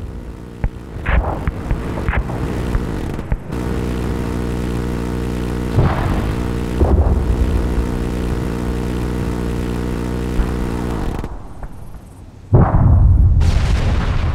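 Rockets launch with sharp rushing roars.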